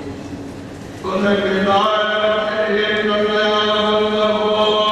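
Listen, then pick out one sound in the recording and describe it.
A choir of men chants slowly in a large echoing hall.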